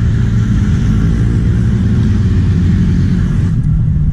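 Motor scooters drive past on a road.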